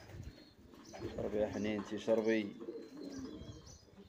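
A pigeon pecks at a plastic bottle.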